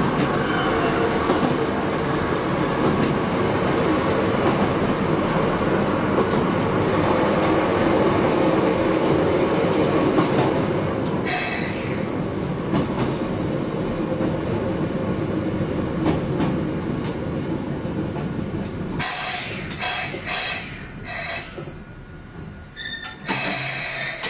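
Wheels clatter over rail joints.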